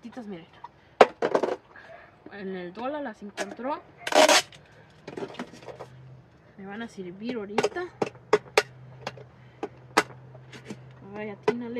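Pots and plastic containers clatter and knock.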